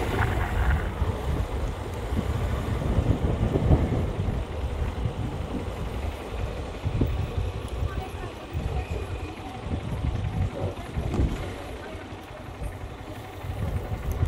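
A car engine rumbles steadily as the car drives slowly along a street.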